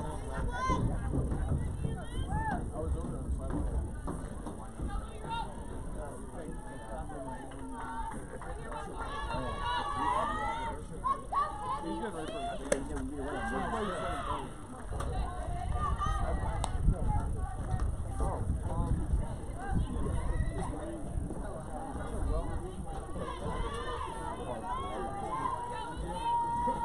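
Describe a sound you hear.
Young women call out and cheer across an open field.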